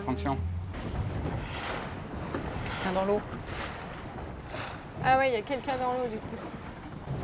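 A man calls out loudly across open water.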